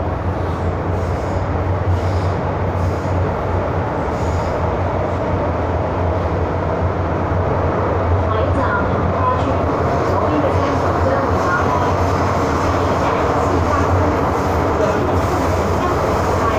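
A subway train rumbles and roars steadily along the track.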